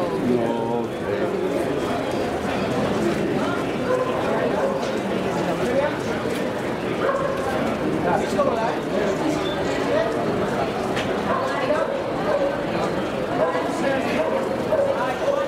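A crowd of men and women talks and calls out close by, echoing under a covered walkway.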